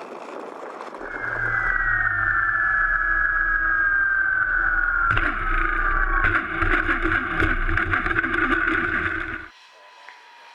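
A model airplane's electric motor whines at close range.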